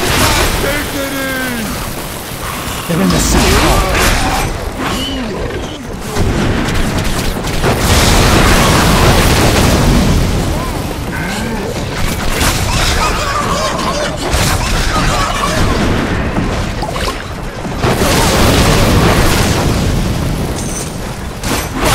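Monsters grunt and growl as they are struck.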